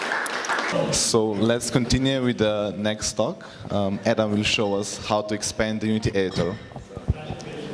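A young man speaks with animation through a microphone in a large echoing hall.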